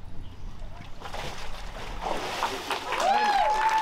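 Water splashes as a man is dipped and lifted out.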